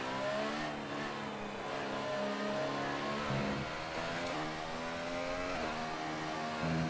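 A racing car engine whines at high revs, shifting pitch as it changes gear.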